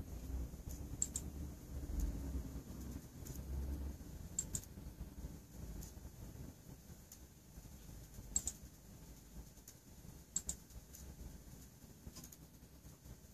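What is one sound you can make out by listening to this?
Candle flames crackle softly now and then.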